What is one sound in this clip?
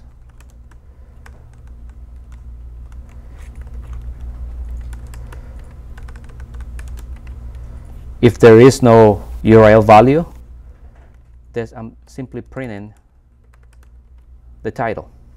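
Keys on a keyboard click softly as someone types.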